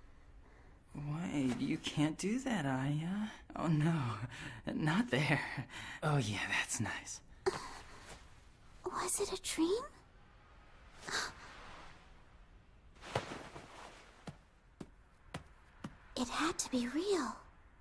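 A young woman speaks softly and hesitantly nearby.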